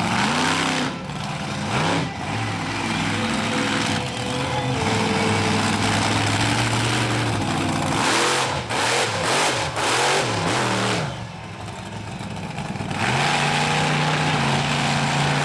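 A monster truck engine roars and revs loudly.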